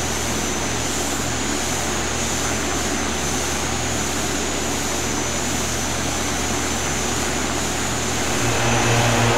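A single propeller engine drones steadily.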